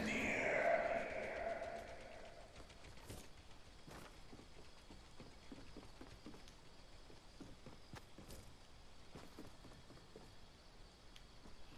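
Light footsteps tap on wooden boards.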